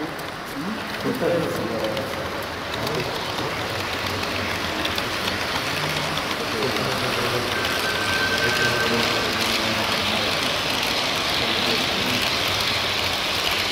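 A model train rumbles and clatters along its track.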